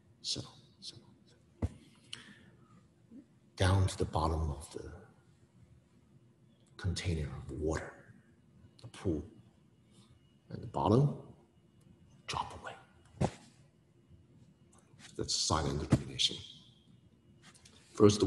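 A man speaks calmly and expressively, close by, with pauses.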